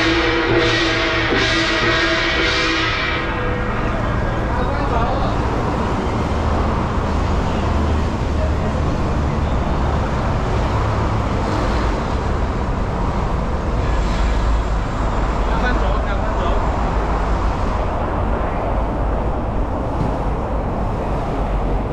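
A crowd of men and women talk and call out nearby.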